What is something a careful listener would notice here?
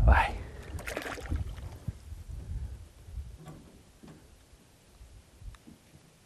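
Water splashes as a large fish thrashes at the surface.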